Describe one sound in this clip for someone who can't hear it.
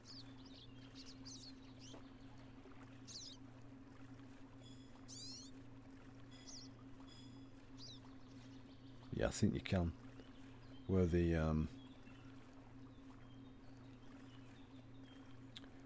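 A paddle dips and splashes softly in calm water.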